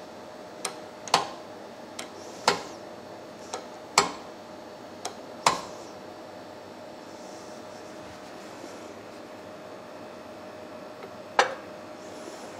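A steel bolt clanks sharply as a press bends it in a vise.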